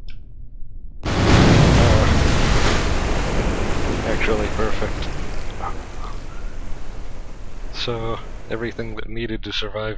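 A capsule crashes into water with a loud rushing splash that slowly fades.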